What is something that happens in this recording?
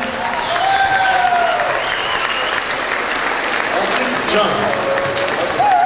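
An audience applauds and cheers in a large echoing hall.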